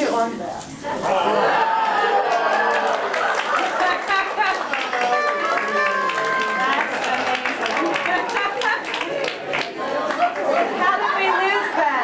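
An audience chatters and laughs in a room.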